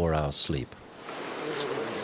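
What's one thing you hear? A tent flap rustles.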